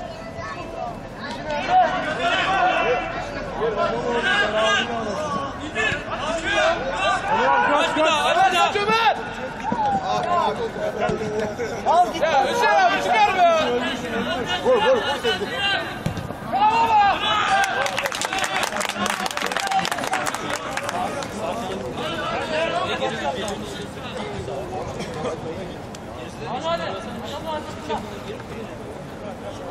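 Men shout and call out across an outdoor pitch.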